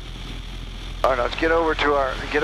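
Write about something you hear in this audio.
A young man speaks loudly over a headset intercom.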